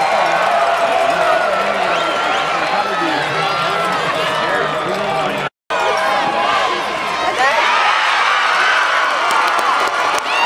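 A large crowd of spectators chatters and shouts outdoors.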